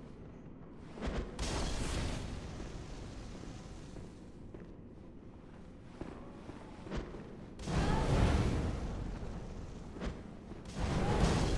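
Blades swing and slash with heavy, wet strikes.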